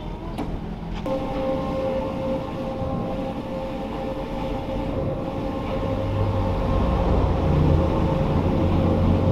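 A large printer whirs steadily as its print head moves.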